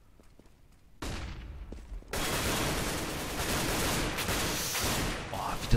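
Gunshots fire in rapid bursts nearby.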